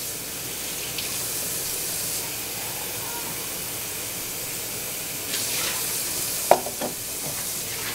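Dishes clink against each other in a sink.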